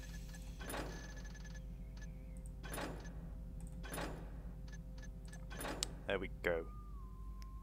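Short menu clicks sound at a steady pace.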